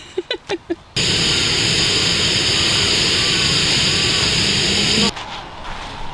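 A gas burner hisses and roars steadily.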